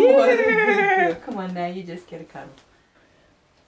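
A woman talks close by in a high, animated voice.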